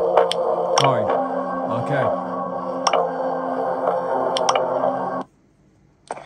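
Upbeat game music plays from a tablet's small speaker.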